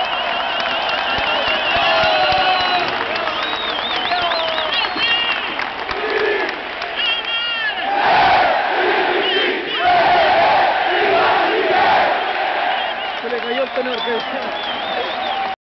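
A huge stadium crowd cheers and roars outdoors.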